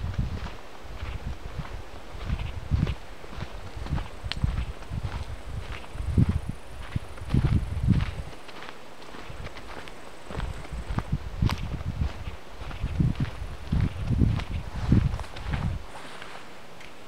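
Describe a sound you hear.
Footsteps crunch through dry leaves and twigs on the forest floor.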